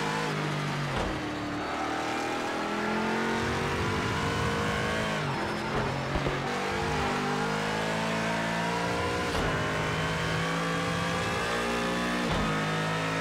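Gearshifts knock sharply now and then.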